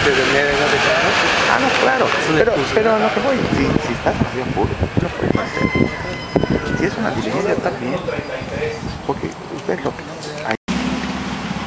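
Several men and women talk with one another close by.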